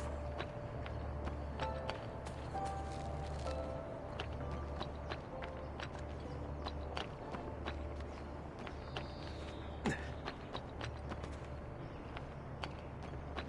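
Footsteps clatter quickly across roof tiles.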